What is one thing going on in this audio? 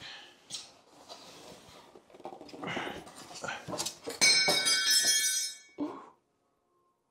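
Foam packing rustles and squeaks as it is pulled away.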